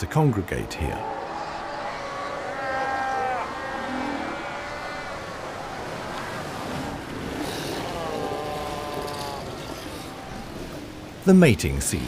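A large colony of seals bleats and calls.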